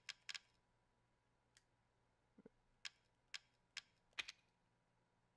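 Short menu clicks tick one after another.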